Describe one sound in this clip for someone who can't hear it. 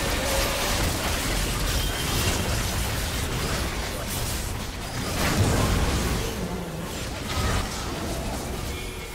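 Magic spells crackle and burst in a hectic fight.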